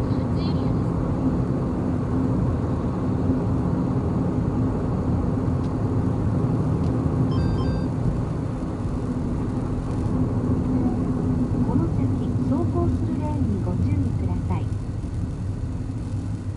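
Tyres roll on smooth pavement.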